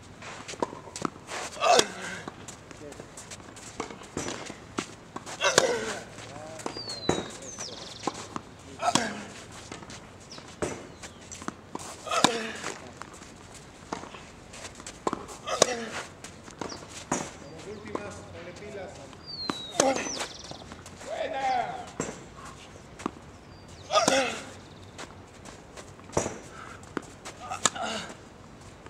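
Tennis rackets strike a ball back and forth outdoors.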